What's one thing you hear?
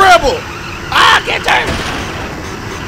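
Wood smashes and splinters in a crash.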